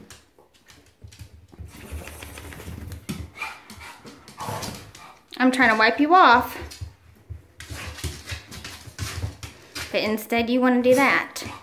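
A towel rustles as a dog tugs and shakes it.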